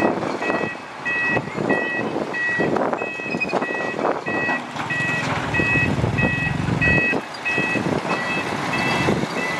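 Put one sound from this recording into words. Heavy diesel engines rumble and roar nearby.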